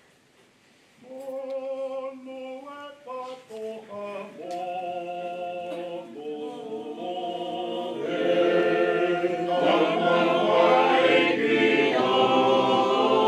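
A congregation sings a hymn together, growing fuller and louder.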